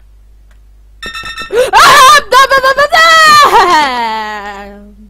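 A young woman screams loudly and then laughs.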